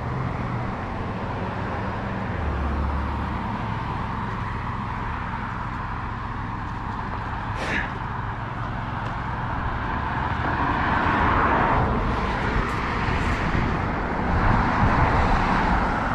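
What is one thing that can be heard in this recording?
Tyres roll steadily over rough asphalt.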